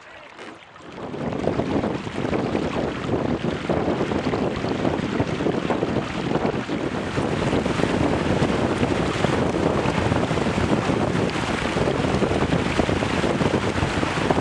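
Water splashes and hisses against a speeding boat's hulls.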